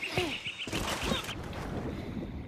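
Water splashes as a swimmer plunges in.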